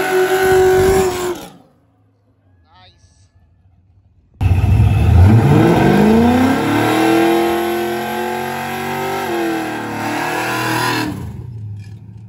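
Tyres spin and screech on the road.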